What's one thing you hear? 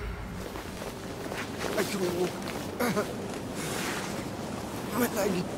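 A man speaks weakly and in pain, close by.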